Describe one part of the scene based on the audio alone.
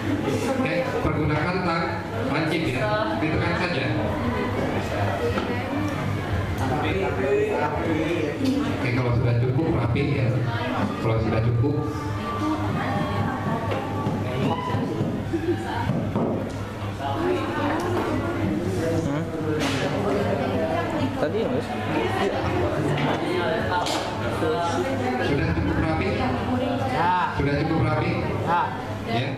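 A young man speaks steadily into a microphone, heard through a loudspeaker in an echoing room.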